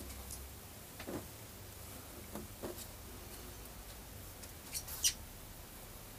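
Fabric rustles softly as clothes are laid down on a pile.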